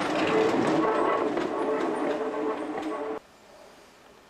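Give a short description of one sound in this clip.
A tram rumbles loudly past close by.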